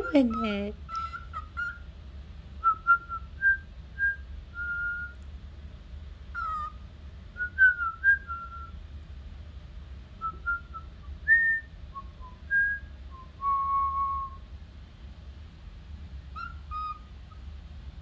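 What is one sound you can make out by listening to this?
A cockatiel whistles a tune nearby in short, clear notes.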